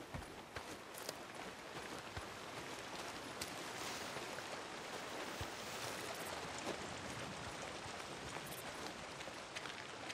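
Footsteps swish through tall grass outdoors.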